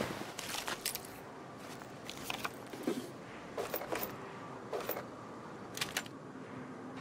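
Short interface clicks sound as items are picked.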